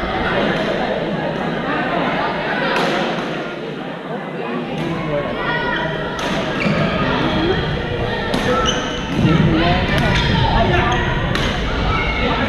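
Shuttlecocks are struck with rackets, with sharp pops echoing around a large hall.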